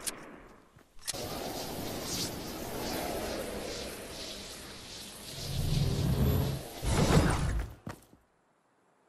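Wind rushes steadily during a glide through the air.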